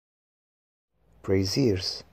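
A man speaks clearly into a microphone.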